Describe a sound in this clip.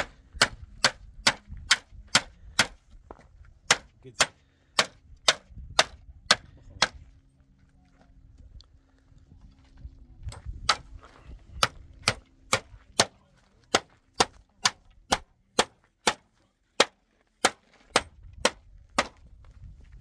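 A tool knocks sharply and steadily against wood.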